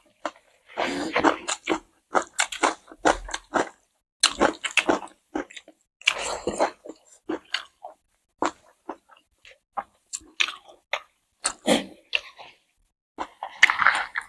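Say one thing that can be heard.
A woman chews food loudly and wetly close to a microphone.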